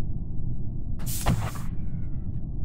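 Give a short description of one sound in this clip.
A game whoosh sweeps past as a figure is thrown out.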